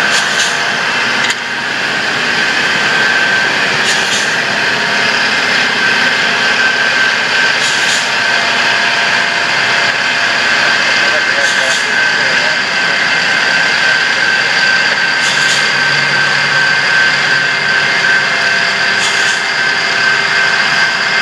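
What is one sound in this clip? A diesel engine rumbles steadily as a rail vehicle rolls past.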